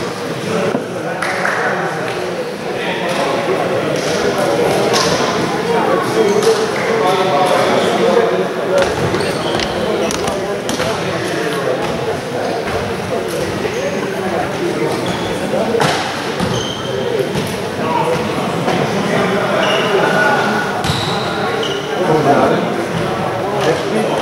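Players and spectators shout and chatter in a large echoing gym.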